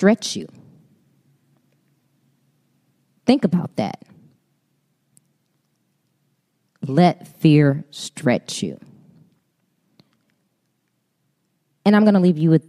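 A woman speaks with animation into a microphone, in short bursts with pauses.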